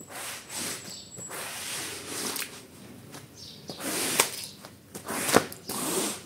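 A rubber squeegee scrapes and swishes water across a wet floor.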